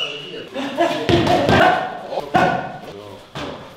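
Gloved fists thud against punching pads.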